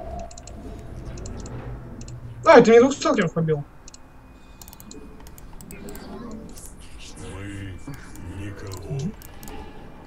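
Short electronic clicks and beeps sound from a game.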